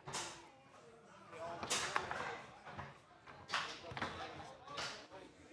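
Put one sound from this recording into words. Foosball rods clack and the ball knocks sharply against the table.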